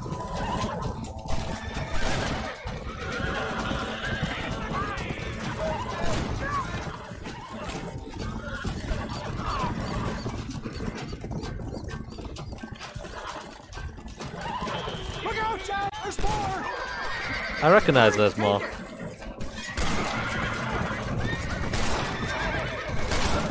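Horse hooves pound on a dirt track.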